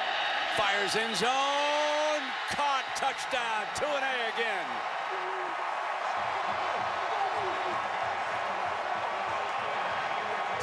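A large crowd cheers and roars loudly in a stadium.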